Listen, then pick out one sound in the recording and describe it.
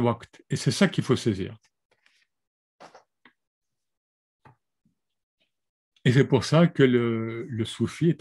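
A middle-aged man speaks calmly and closely through a microphone, pausing between phrases.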